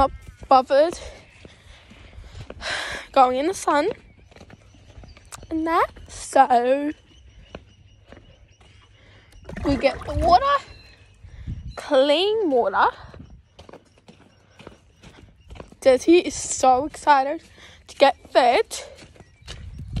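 A young woman talks with animation close to a phone microphone.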